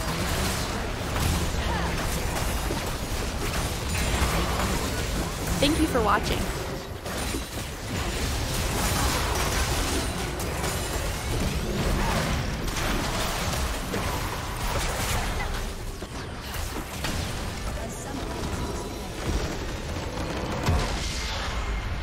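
Game spell effects crackle and boom during a battle.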